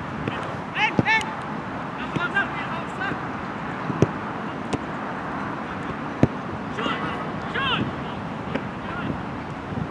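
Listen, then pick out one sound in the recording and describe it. Players shout to each other from a distance across an open field.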